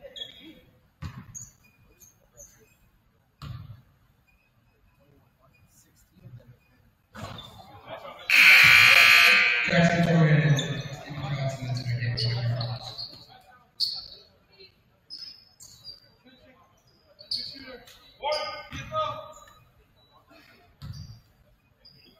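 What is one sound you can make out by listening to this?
A basketball bounces with dull thuds on the floor.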